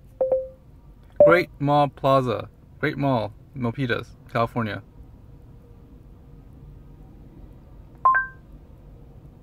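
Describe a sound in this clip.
An electronic chime beeps from a car's dashboard system.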